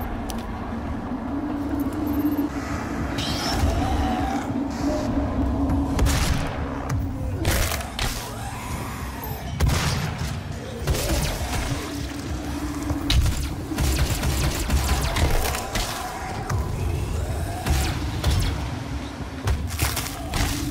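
Heavy punches thud into flesh.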